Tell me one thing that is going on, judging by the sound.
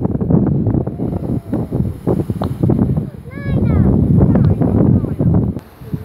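Waves lap and splash against rocks at the shore.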